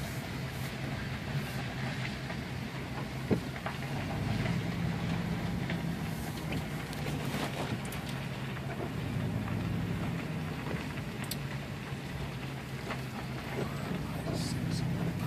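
A vehicle engine hums steadily from inside the cabin.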